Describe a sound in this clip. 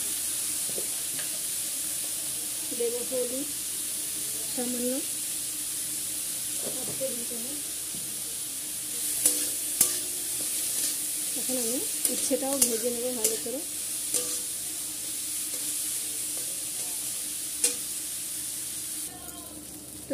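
Vegetables sizzle in oil in a wok.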